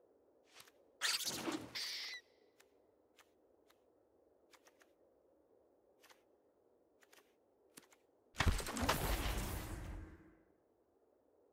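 Cards swish loudly as a new hand is dealt out.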